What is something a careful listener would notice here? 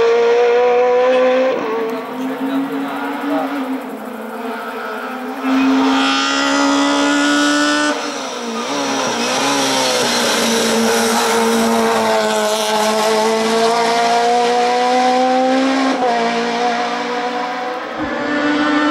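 A racing car engine revs hard and roars past, rising and dropping in pitch as it shifts gears.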